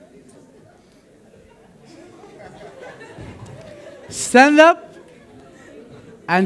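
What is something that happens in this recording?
An audience murmurs softly.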